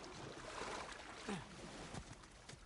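Water splashes as someone climbs out of it.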